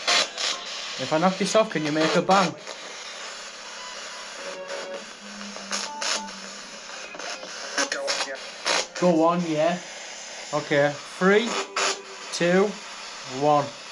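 A young man talks casually up close.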